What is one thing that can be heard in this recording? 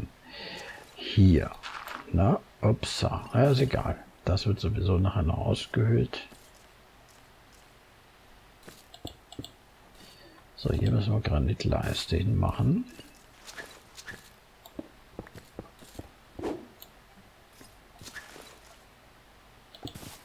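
Short crunching taps sound as blocks are dug and broken.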